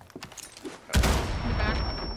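An explosion bursts with a loud bang nearby.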